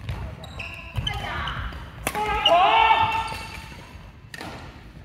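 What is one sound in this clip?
Adult players call out and talk across the hall.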